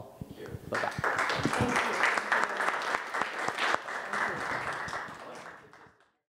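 A crowd applauds with steady clapping that fades out at the end.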